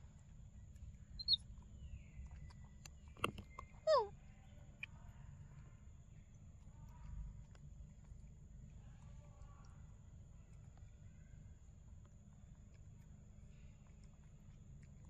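A monkey chews and smacks on soft fruit up close.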